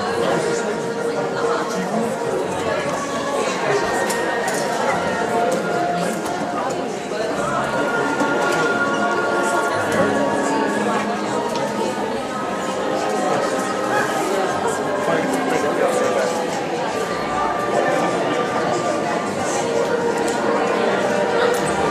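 A piano plays in a large hall.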